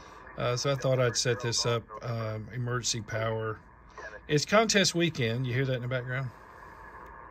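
A man speaks calmly through a radio loudspeaker.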